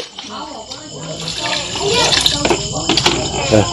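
Water pours into a pot and splashes.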